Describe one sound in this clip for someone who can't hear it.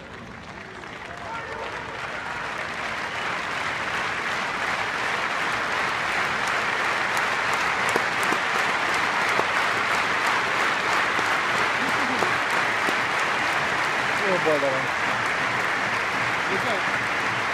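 A large stadium crowd applauds, slowly swelling to a steady roar.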